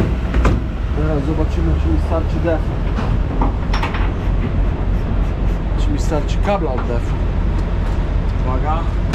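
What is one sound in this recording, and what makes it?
A middle-aged man talks casually, close by.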